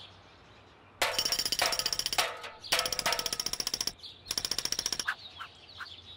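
A woodpecker drums rapidly on a tree trunk.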